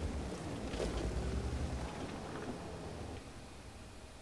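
A heavy tank engine rumbles low.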